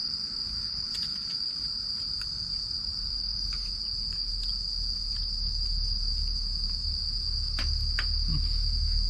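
Utensils clink softly against a dish.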